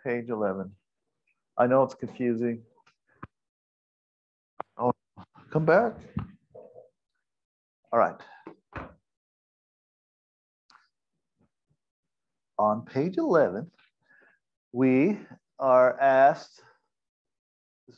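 A man speaks calmly and close to a microphone, with pauses.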